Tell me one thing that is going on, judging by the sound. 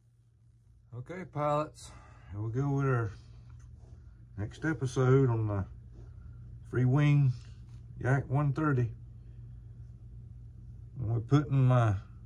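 A man talks calmly and close by, in short phrases.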